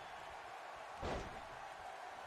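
A body slams onto a wrestling ring mat with a thud.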